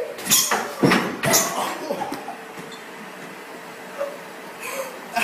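A treadmill belt whirs steadily.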